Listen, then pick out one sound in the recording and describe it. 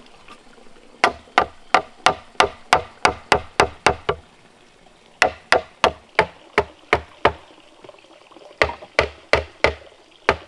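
A mallet knocks sharply on bamboo in quick bursts of blows.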